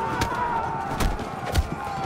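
Sharp blows strike during a close fight.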